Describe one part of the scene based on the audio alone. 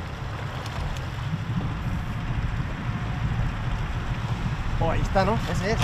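A boat's outboard motor rumbles steadily.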